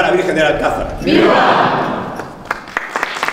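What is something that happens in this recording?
A man speaks into a microphone in a large echoing room.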